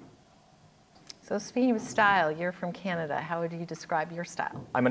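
A middle-aged woman speaks calmly, close to a microphone.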